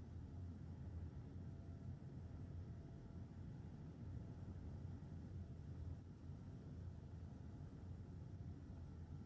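A welding tool hums with a low, steady drone.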